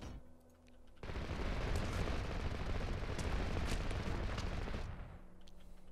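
Guns fire in a dense, rumbling burst.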